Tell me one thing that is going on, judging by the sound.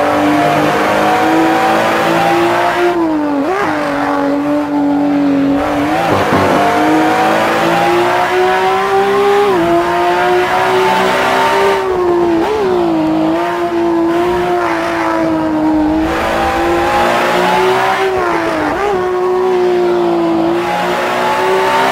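A racing car engine roars at high revs, its pitch rising and dipping with gear changes.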